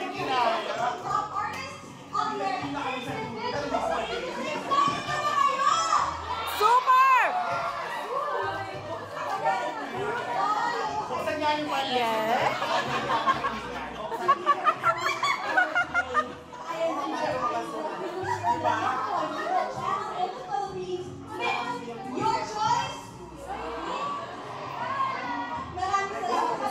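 A crowd of young women chatters and cheers in the room.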